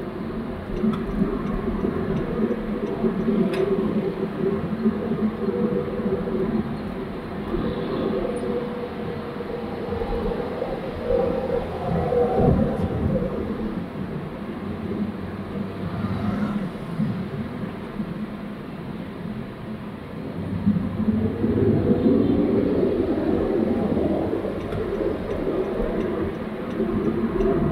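A car engine hums steadily, heard from inside the cabin.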